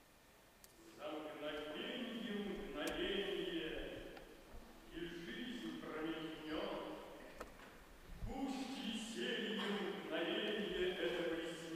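A man sings in a trained voice in a large echoing hall.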